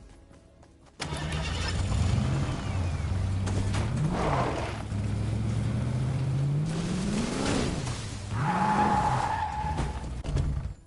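A car engine hums and revs as a car drives over rough ground.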